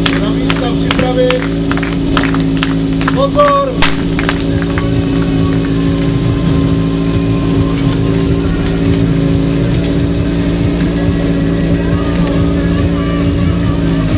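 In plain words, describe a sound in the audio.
A crowd of onlookers calls out and cheers outdoors.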